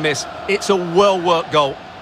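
A football is struck hard with a thud.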